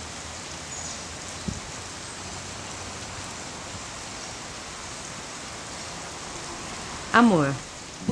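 Rain falls steadily and patters on a puddle.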